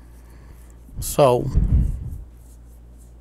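A young woman speaks briefly with animation, close to the microphone.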